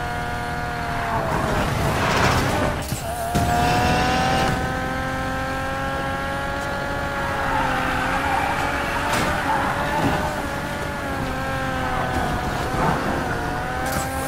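Tyres screech as a car drifts through bends.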